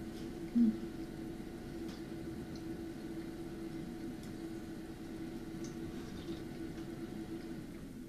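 An elderly woman sips and slurps soup close by.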